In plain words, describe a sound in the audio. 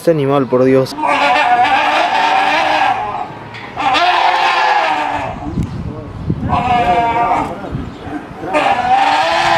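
Bears growl and bellow loudly at each other.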